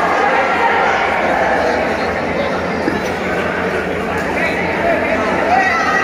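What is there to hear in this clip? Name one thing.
A crowd of spectators chatters steadily in a large echoing hall.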